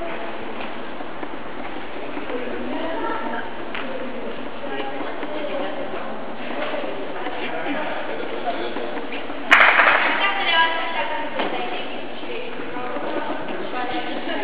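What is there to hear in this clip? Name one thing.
Young women chatter and call out in a large echoing hall.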